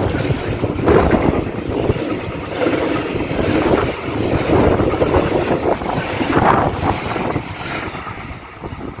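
A freight train rumbles past close by, its wheels clattering loudly on the rails.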